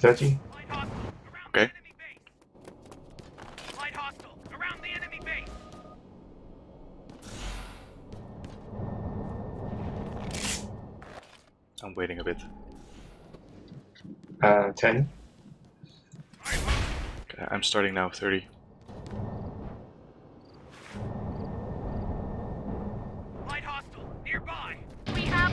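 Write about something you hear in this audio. A gun fires sharp shots.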